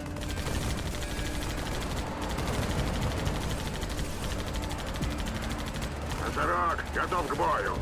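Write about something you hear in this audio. A heavy machine rumbles as it lowers down and lands.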